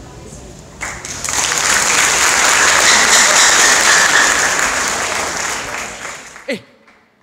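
An audience cheers and applauds in a large hall.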